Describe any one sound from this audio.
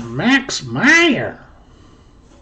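An elderly man speaks close to a microphone with animation.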